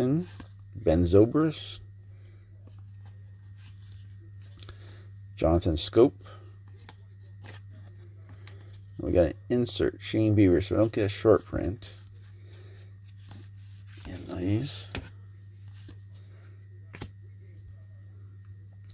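Trading cards rustle and slide against each other in a person's hands.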